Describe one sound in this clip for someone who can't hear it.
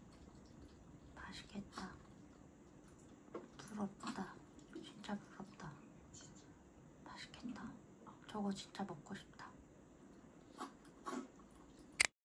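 A young woman slurps and chews food noisily.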